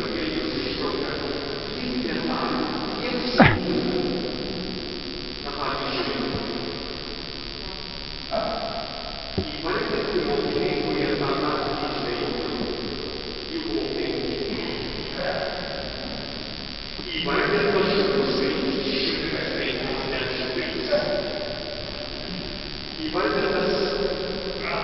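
A congregation of older men and women sings together, echoing in a large hall.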